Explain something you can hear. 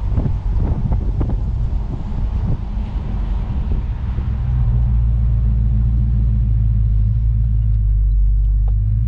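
Wind buffets the open car.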